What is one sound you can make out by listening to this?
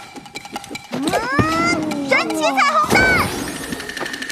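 Young children exclaim in surprise.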